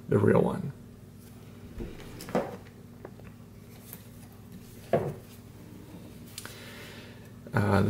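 A watch is handled, its strap rustling and tapping softly.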